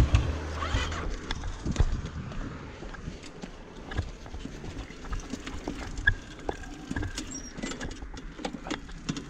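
A quad bike engine runs with a low rumble.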